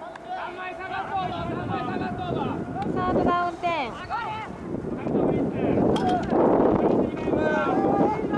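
A group of young men cheers and chatters on the sideline.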